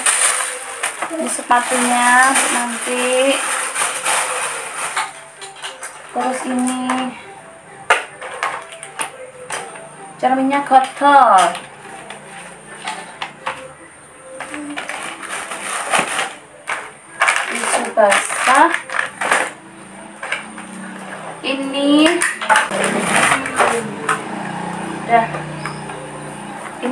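A plastic bag rustles and crinkles as things are packed.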